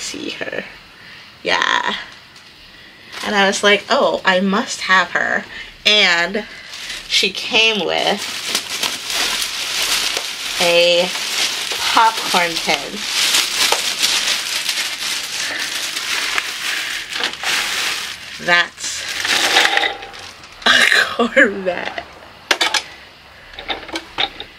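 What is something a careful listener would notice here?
A young woman talks animatedly and laughs close to the microphone.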